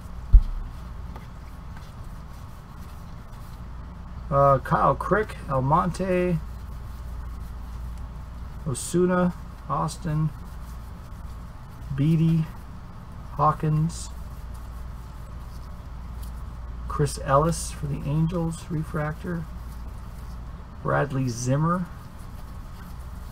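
Trading cards rustle and slap softly as they are flipped through.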